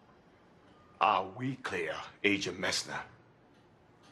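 A man speaks close by in a strained, emotional voice.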